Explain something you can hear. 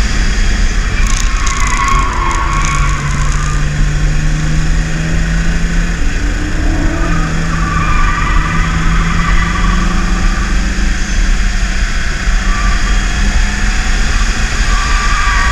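A car engine hums and revs up as the car speeds up.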